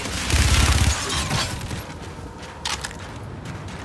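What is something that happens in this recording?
Gunshots crack and boom in short bursts.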